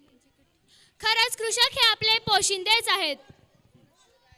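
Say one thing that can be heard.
A woman sings loudly through loudspeakers, with a wavering voice.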